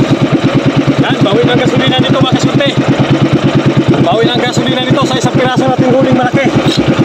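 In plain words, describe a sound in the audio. A man talks cheerfully close by, over a boat engine.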